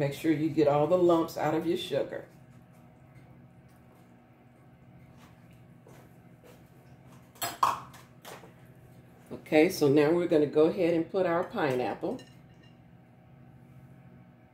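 Sauce bubbles and simmers softly in a pan.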